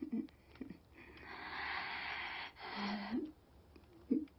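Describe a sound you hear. An elderly woman groans in pain.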